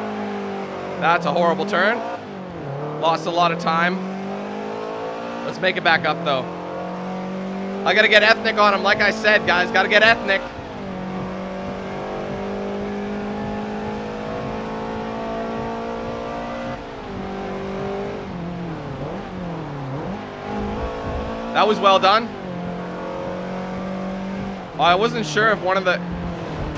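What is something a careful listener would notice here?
A racing car engine drones steadily, rising and dropping in pitch as the gears change.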